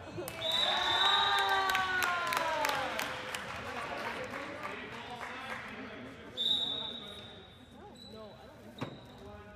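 Sneakers squeak on a hard floor in an echoing gym.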